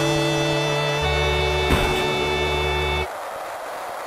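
Chiptune game music plays loudly, then stops abruptly.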